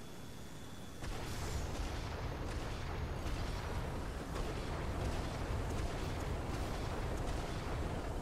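Gunfire and explosions crackle and boom in rapid bursts.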